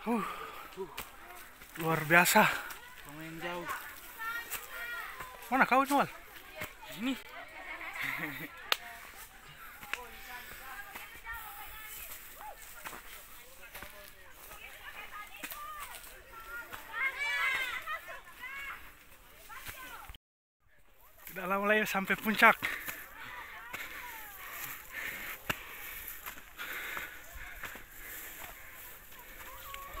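A young man talks with animation close to a phone microphone, outdoors.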